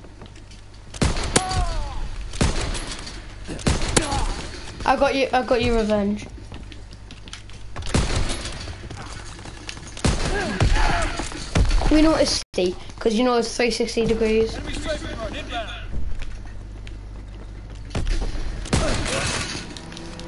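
Gunshots crack loudly, again and again.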